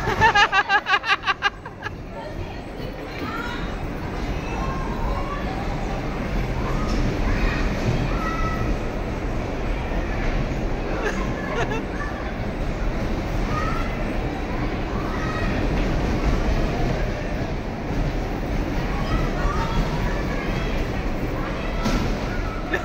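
Bumper cars hum and rumble across a floor.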